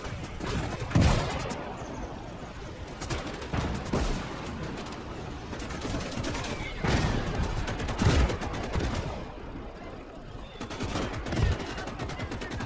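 Heavy tank guns boom now and then in a battle.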